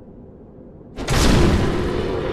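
A heavy weapon strikes with a loud crash.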